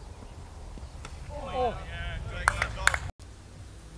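A cricket bat knocks a ball.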